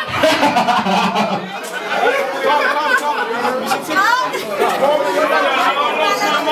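Several young men talk loudly and excitedly over each other close by.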